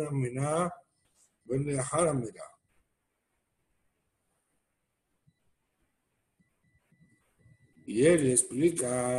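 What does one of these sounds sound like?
A middle-aged man reads aloud in a chanting voice, heard through an online call.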